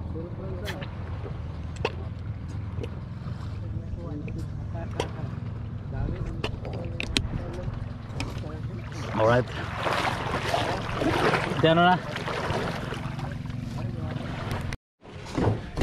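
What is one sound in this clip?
Gentle water laps against a boat's hull outdoors.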